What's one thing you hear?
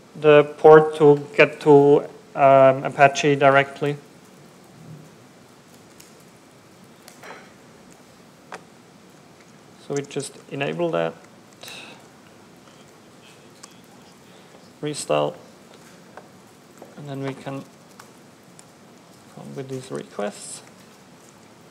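A man speaks calmly into a microphone, in pauses.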